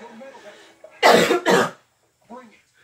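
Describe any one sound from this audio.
A young woman coughs loudly into her arm.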